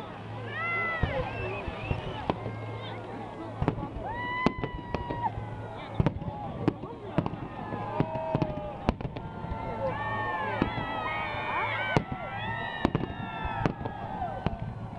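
Fireworks burst with sharp bangs and crackles outdoors.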